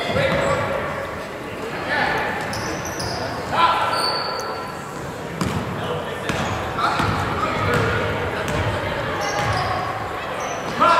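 Sneakers squeak sharply on a hard court in a large echoing gym.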